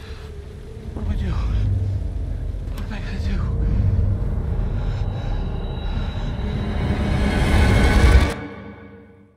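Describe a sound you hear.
A middle-aged man speaks in a low, worried voice close by.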